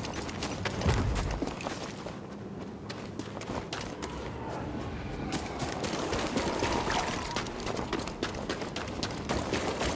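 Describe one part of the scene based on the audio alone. Footsteps run quickly over wet ground.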